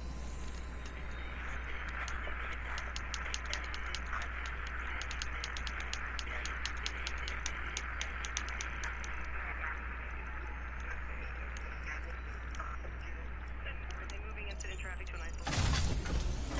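Radio static crackles and hisses, shifting as a signal is tuned.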